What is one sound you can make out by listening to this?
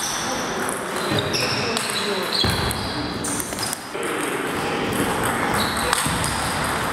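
A table tennis ball clicks sharply back and forth off paddles and the table.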